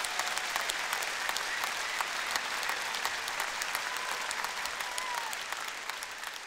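A crowd cheers and whistles.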